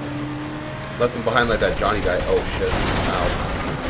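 A car crashes into a truck with a loud metal bang.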